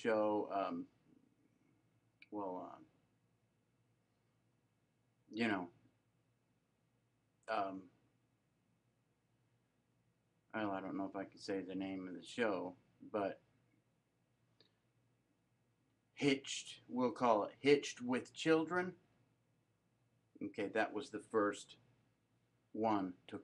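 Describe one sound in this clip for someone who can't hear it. A man speaks calmly into a nearby microphone, in short phrases with pauses.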